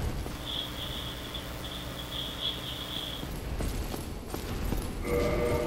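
Armoured footsteps clank on stone steps.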